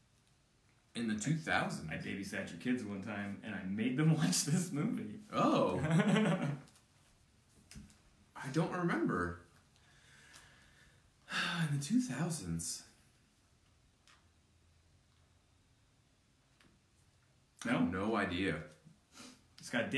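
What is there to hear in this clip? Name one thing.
A second young man speaks calmly close to a microphone.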